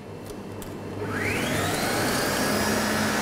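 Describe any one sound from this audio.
An electric mixer motor starts up and whirs, rising in pitch.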